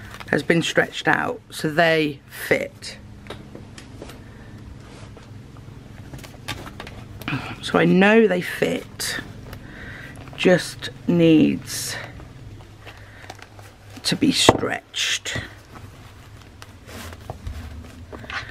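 A cloth pouch rustles as it is moved and opened.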